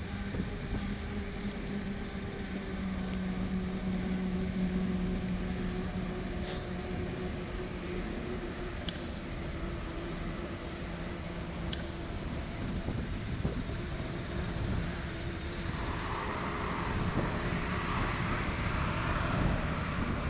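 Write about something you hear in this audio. Bicycle tyres hum on the pavement.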